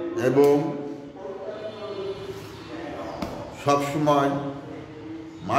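A middle-aged man speaks calmly and clearly, close by, in a slightly echoing room.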